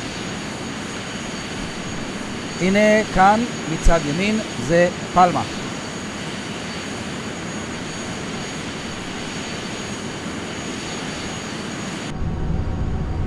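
A jet's engines hum steadily in flight.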